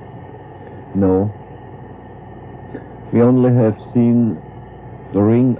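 A man speaks in short phrases outdoors.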